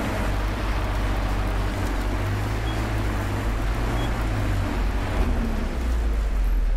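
A vehicle engine hums and rumbles steadily from inside the cab.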